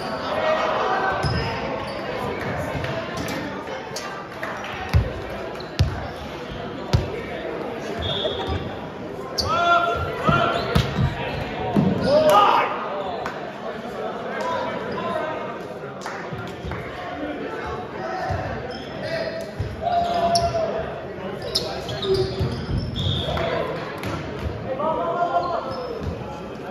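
Young men talk and shout in a large echoing gym.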